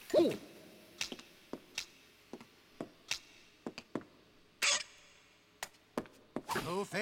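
A walking cane taps sharply on a hard floor.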